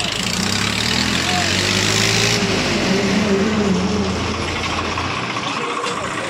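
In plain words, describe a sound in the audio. A tractor engine rumbles and strains nearby.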